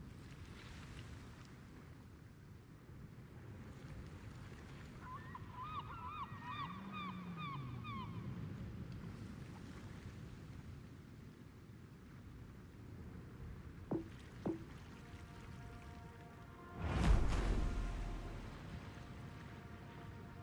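Water laps gently against a ship's hull.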